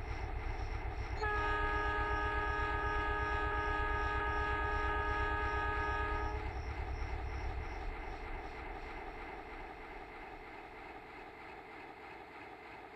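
A diesel locomotive engine throbs and rumbles, then fades.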